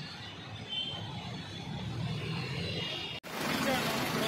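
A scooter engine idles close by.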